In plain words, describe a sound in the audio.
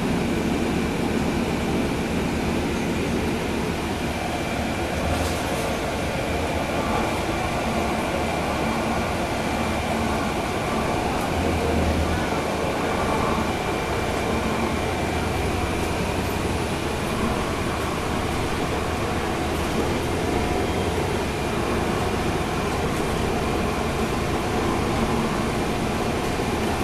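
A bus engine rumbles steadily from inside while riding along a street.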